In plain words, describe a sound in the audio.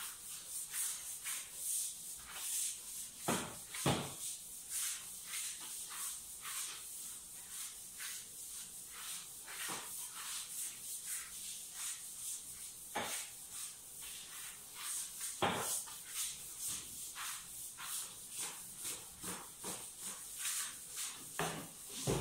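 A mop swishes across a hard floor in quick repeated strokes.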